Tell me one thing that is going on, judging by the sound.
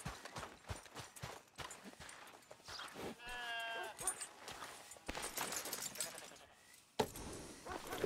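Footsteps thud on wooden boards and dry ground.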